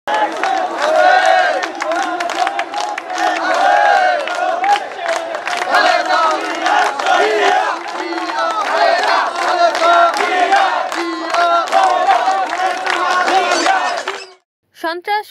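A crowd of men chants slogans loudly in unison outdoors.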